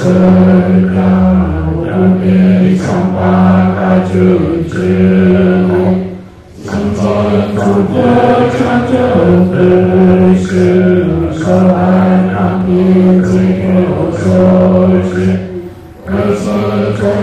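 An elderly man chants in a low, steady voice close to a microphone, pausing briefly for breath.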